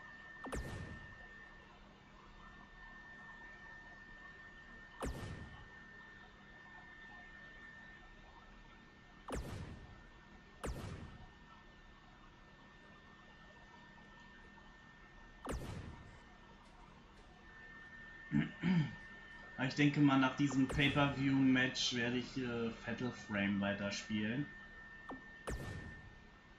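A game menu plays a short swooshing chime each time an item unlocks.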